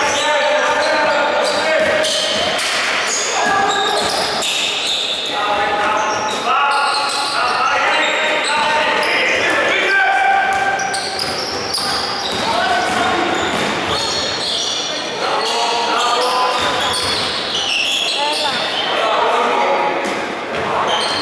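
Young men shout and call out loudly across an echoing hall.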